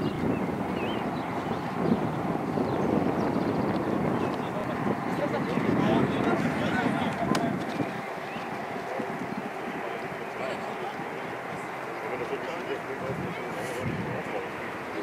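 Teenage boys shout to each other on an open pitch, heard from a distance.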